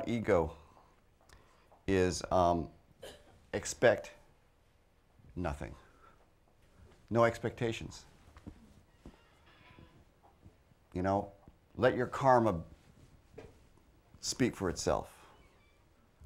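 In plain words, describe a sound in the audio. A middle-aged man speaks expressively into a microphone, pausing between phrases.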